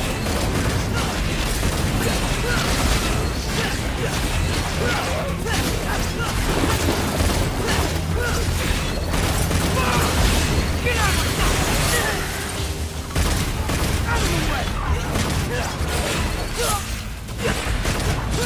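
Blades slash and strike in quick succession.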